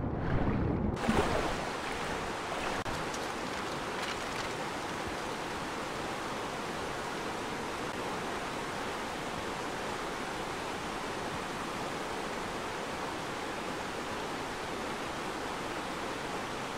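A waterfall rushes steadily nearby.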